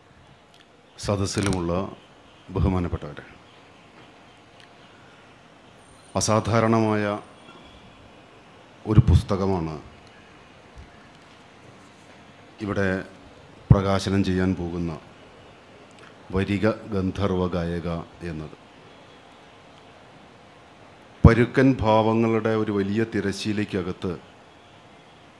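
A man speaks slowly and deliberately through a microphone, in short phrases with long pauses.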